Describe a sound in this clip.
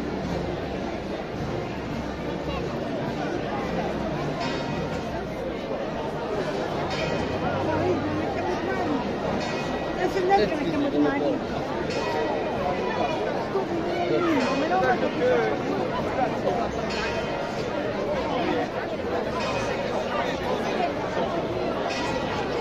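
Footsteps shuffle on pavement as a procession walks by.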